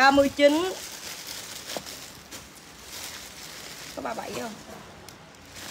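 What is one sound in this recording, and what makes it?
Plastic wrapping crinkles and rustles as it is handled.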